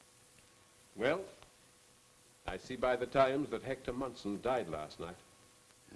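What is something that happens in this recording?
An elderly man speaks in a raised, emphatic voice nearby.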